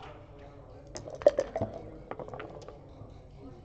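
Dice clatter and rattle across a board.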